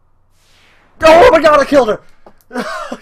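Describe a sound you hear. A glassy shattering burst crashes once.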